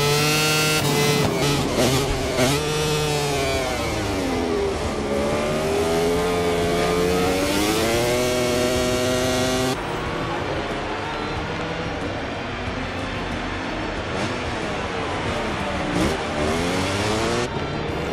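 A motorcycle engine whines past, its pitch dropping as it goes by.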